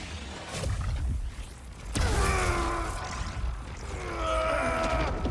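Electricity crackles and sizzles loudly.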